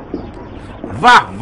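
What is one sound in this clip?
An older man exclaims briefly, close by.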